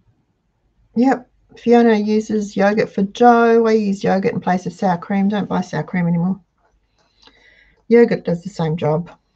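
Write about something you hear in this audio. An elderly woman speaks calmly and clearly into a nearby microphone.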